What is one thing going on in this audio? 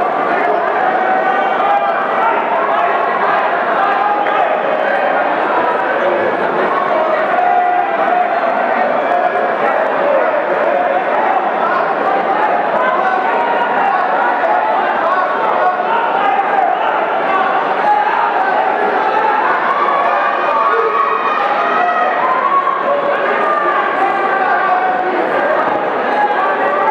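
A crowd of spectators chatters and calls out.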